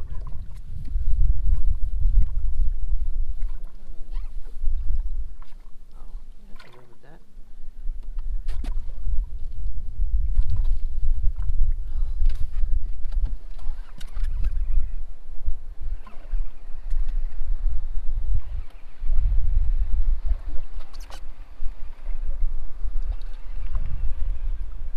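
Wind buffets and rumbles outdoors on open water.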